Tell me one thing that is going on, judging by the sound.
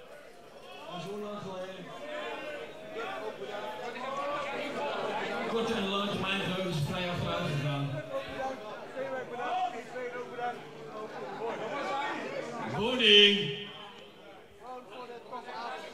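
A man speaks into a microphone over loudspeakers in a large echoing hall.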